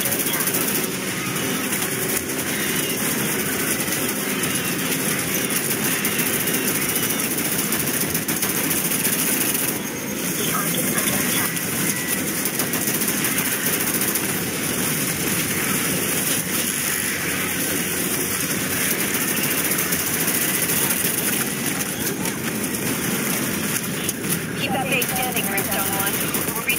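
Rapid gunfire rattles continuously.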